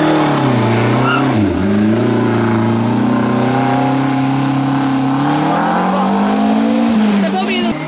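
A rally car engine roars loudly, dropping at a gear change and revving up again as the car accelerates away.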